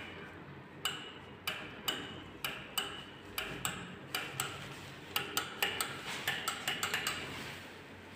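A button clicks repeatedly as a finger presses it.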